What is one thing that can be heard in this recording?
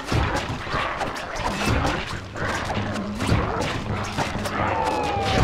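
Blows land with sharp thwacks.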